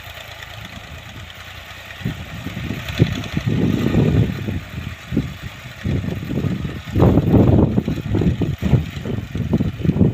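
A tractor engine rumbles steadily in the distance.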